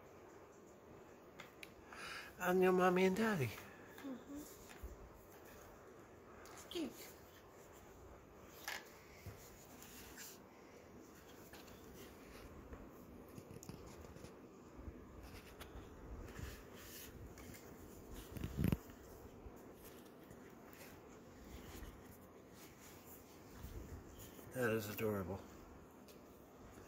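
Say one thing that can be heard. Paper cards rustle as they are handled.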